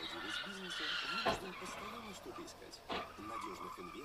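A car slams into another car with a crunch.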